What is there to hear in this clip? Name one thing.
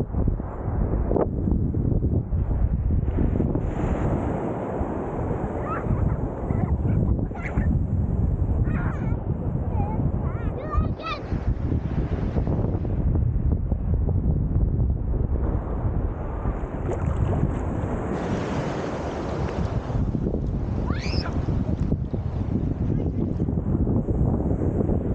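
Water splashes and sloshes close by as a swimmer moves through it.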